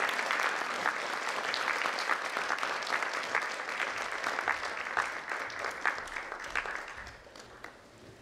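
An audience applauds in a large hall and the clapping fades away.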